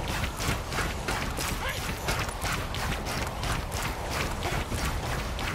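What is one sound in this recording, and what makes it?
Melee blows land in quick succession with sharp hits.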